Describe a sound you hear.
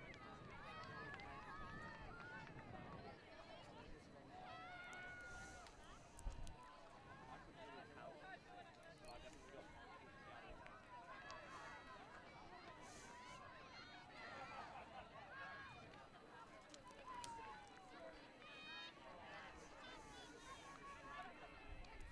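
A crowd of people chatter and call out outdoors.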